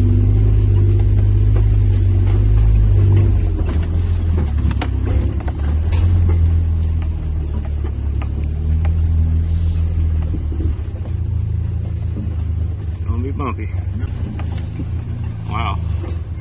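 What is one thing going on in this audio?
An engine rumbles low and steady as a vehicle crawls over rough ground.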